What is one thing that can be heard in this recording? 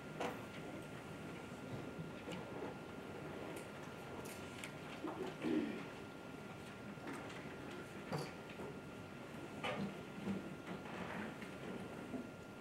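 A man speaks calmly through a microphone in a large room with some echo.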